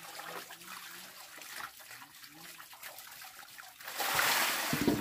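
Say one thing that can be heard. Hands swish water in a basin.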